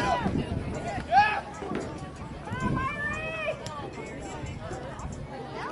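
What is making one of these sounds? A soccer ball thuds as it is kicked.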